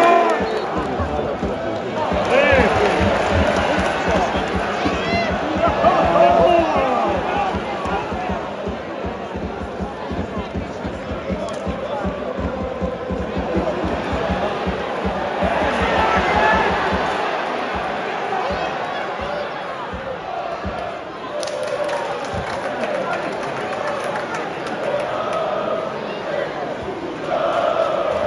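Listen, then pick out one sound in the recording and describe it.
A large crowd chants and cheers loudly in an open stadium.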